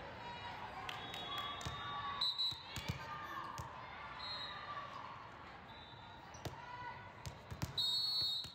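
Sneakers squeak sharply on the court.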